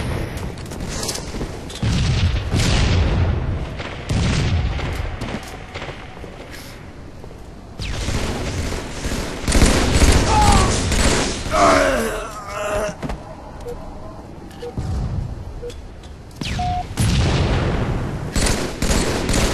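Rapid gunfire from a video game bursts again and again.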